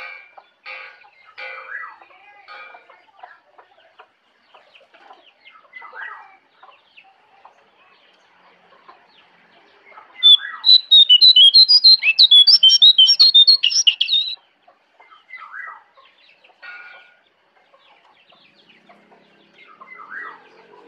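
A songbird gives short chirps and calls on and off, close by.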